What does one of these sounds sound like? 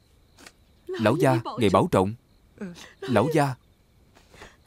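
A woman speaks tearfully and softly.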